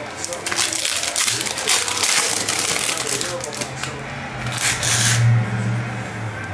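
Foil wrappers crinkle and tear.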